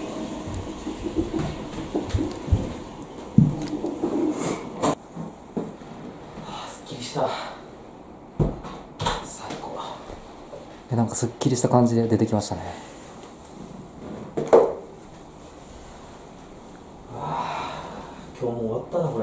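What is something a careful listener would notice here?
A young man speaks casually nearby.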